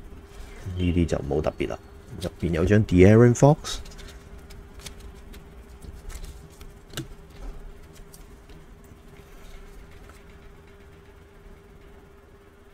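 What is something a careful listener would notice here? Plastic card cases click and rustle as they are handled.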